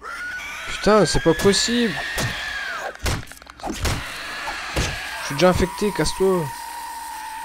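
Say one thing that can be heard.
A zombie growls and snarls.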